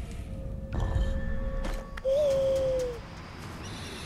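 A wild animal snarls and cries close by.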